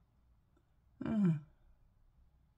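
A woman close by briefly hums a short falling sound.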